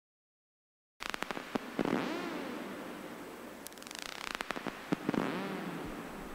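Electronic synthesizer tones pulse, click and sweep in pitch.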